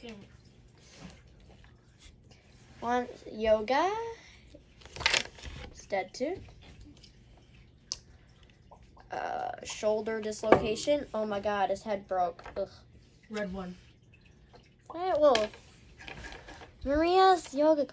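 Small plastic toy figures tap and clack against a wooden table.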